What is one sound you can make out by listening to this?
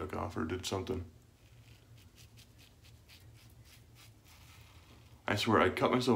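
A peel-off mask crackles as it is pulled from skin.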